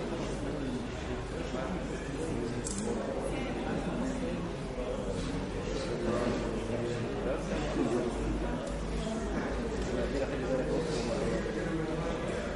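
A man speaks steadily to an audience in a large echoing hall.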